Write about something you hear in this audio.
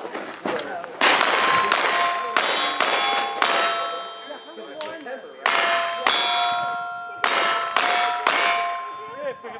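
Pistol shots fire in quick bursts outdoors.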